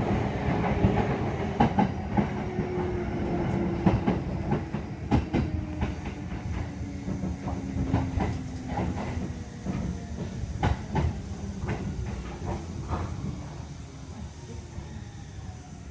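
A train rumbles along the tracks and slows down.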